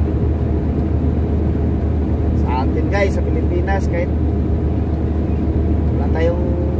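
An engine drones steadily inside a cabin.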